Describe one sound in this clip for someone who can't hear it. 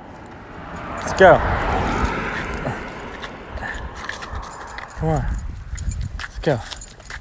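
A dog whines excitedly close by.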